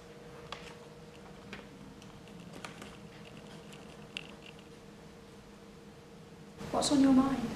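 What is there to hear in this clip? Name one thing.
Paper rustles softly nearby.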